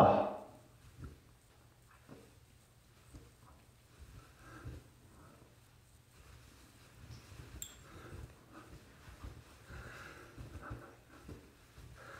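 A towel rubs softly against a face.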